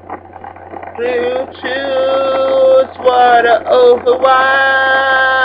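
A young man sings loudly and passionately into a microphone, close by.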